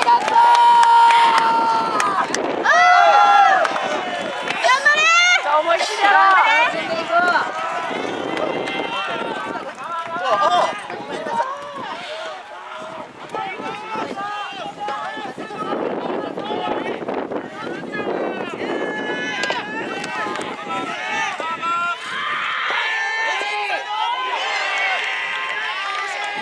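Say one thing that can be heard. A large outdoor crowd chatters and cheers throughout.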